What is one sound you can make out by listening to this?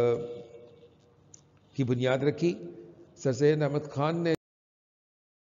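A middle-aged man speaks calmly into a headset microphone.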